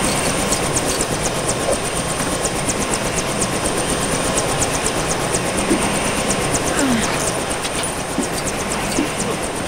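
A helicopter's rotor whirs and chops steadily.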